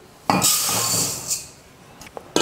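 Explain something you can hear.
Dry rice grains pour and patter into a metal pot.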